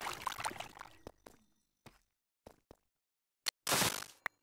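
Footsteps tap on soft ground.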